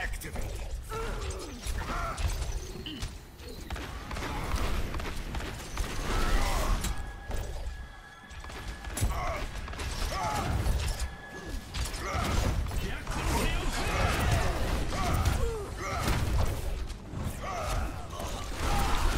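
Weapons fire in rapid bursts with loud blasts and zaps.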